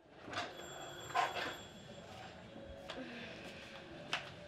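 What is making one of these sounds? A wooden door clicks open.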